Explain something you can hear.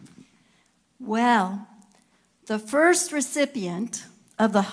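An elderly woman speaks calmly into a microphone, heard through a loudspeaker in a large room.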